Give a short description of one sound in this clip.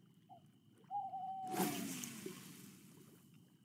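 A fishing line swishes through the air in a cast.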